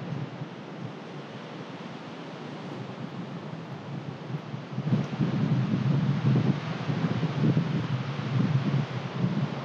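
Wind blows through tall trees outdoors, growing gustier.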